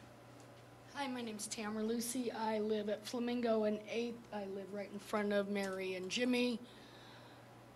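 A middle-aged woman speaks calmly into a microphone, heard through a loudspeaker in a large room.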